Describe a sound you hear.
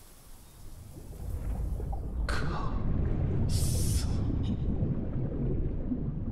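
Deep water rumbles and churns all around.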